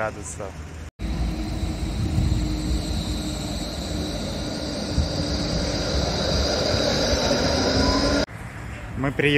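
A tram rolls past with a rumble and a rising whine.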